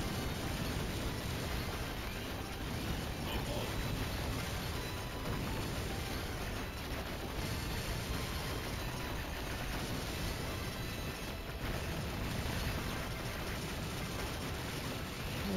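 Rapid gunfire and explosions from a video game crackle and boom without pause.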